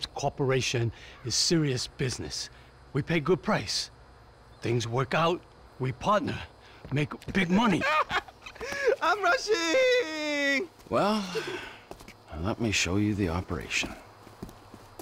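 A man speaks calmly and persuasively up close.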